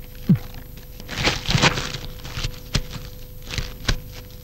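Papers rustle as a man leafs through files.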